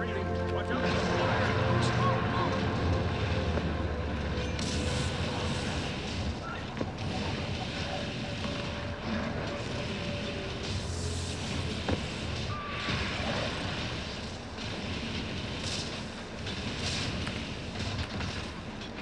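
Spell effects crackle and boom in fast fantasy combat.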